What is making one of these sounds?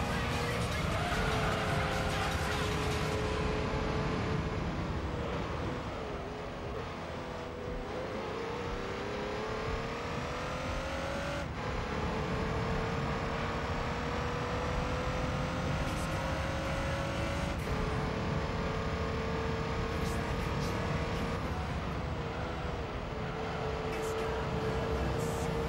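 A racing car engine revs high and shifts gears.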